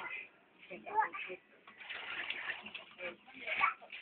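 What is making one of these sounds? Water splashes into a plastic bucket.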